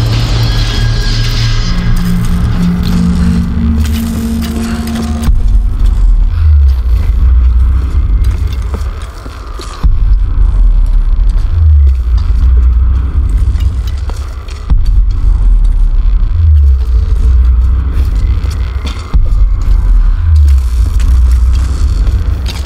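Footsteps tap on a hard floor at a quick pace.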